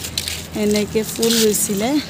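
Water pours from a watering can and splashes onto soil.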